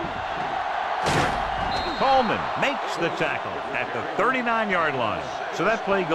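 Football players collide hard in a tackle.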